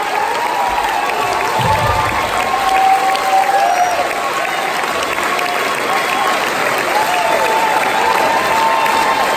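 A large audience claps and cheers in an echoing hall.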